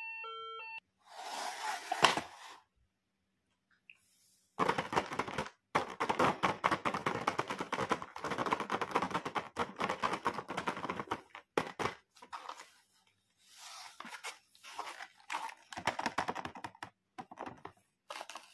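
Plastic packaging crinkles and rustles under handling.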